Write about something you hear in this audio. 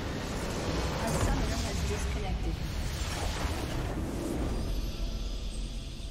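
A large structure explodes with a deep rumble.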